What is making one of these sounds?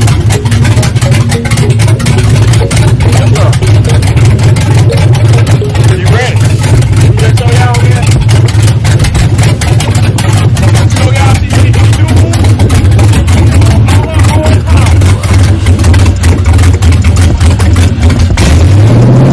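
A car engine idles with a rough, rapid ticking.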